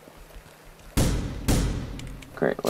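Gunshots crack twice in quick succession.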